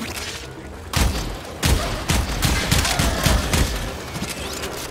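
A heavy gun fires a burst of loud shots.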